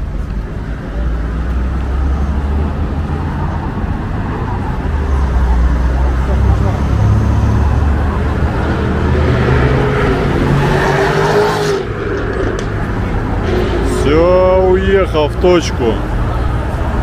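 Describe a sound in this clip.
Skateboard wheels roll over rough asphalt with a low, steady rumble.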